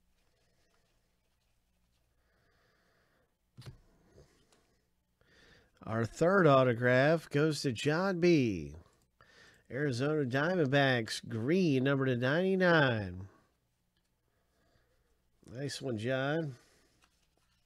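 Trading cards rustle and slide against each other.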